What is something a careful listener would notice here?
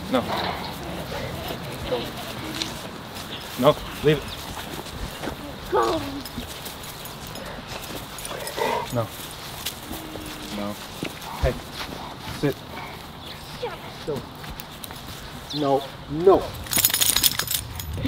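Footsteps crunch on dry grass.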